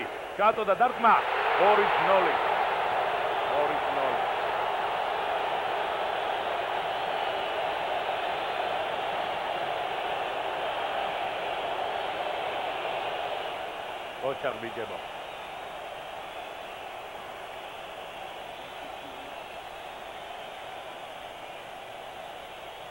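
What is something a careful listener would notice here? A large stadium crowd roars and cheers loudly, then settles to a steady murmur.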